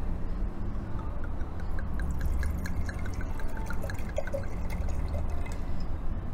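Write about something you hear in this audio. Wine glugs as it is poured from a bottle into a glass.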